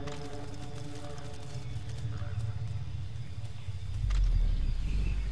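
Footsteps rustle softly through dry grass.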